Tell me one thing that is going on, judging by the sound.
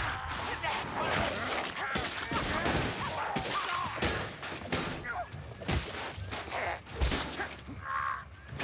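A sword slashes and thuds into flesh.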